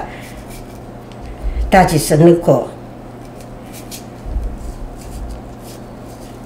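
Hands peel the papery skin off a green onion with soft rustling.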